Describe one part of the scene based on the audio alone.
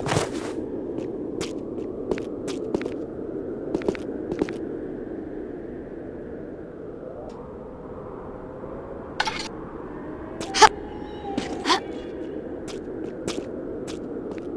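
Footsteps tap on stone at a steady walking pace.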